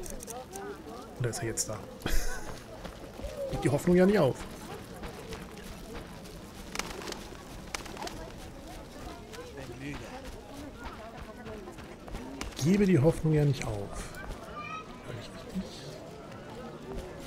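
Footsteps tread on stone and grass.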